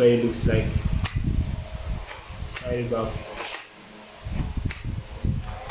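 A wooden toy pistol clicks sharply as it is handled.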